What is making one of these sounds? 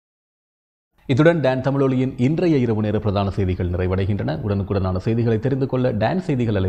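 A man speaks calmly and clearly into a microphone, reading out.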